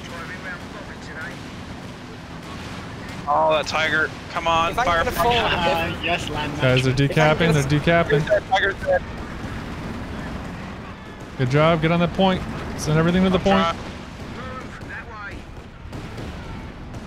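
Distant gunfire and explosions rumble in a battle.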